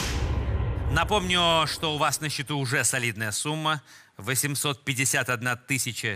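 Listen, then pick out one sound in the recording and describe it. A man speaks with animation into a microphone to an audience.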